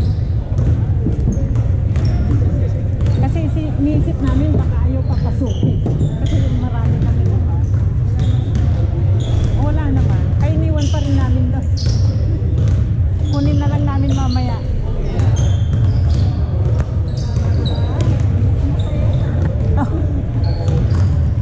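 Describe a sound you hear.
A crowd of young people chatters in an echoing hall.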